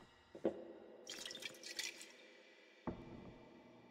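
Liquor pours and gurgles into a glass.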